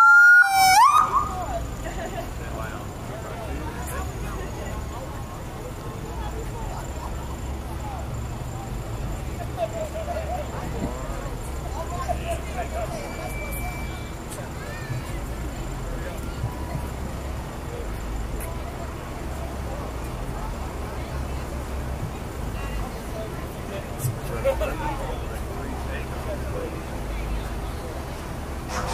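A crowd murmurs in the distance.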